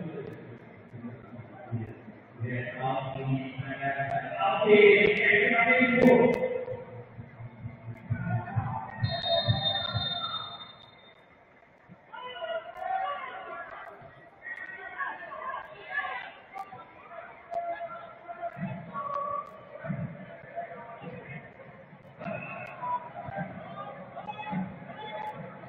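A small crowd murmurs and calls out in an open stadium.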